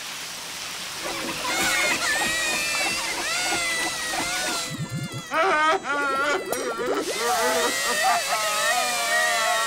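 Cartoon characters wail and sob together.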